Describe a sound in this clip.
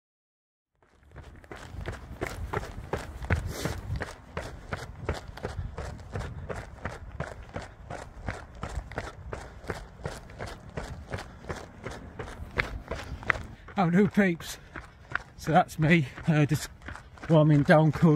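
Footsteps tap quickly on pavement.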